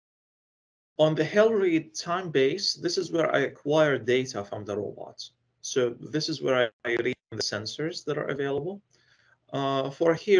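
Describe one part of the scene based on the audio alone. A young man speaks calmly through an online call.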